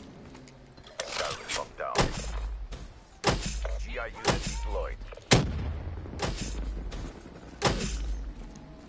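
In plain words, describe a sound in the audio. Gunfire bursts out in loud, sharp shots.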